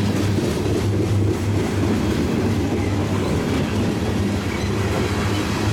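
Steel wheels clatter on the rails.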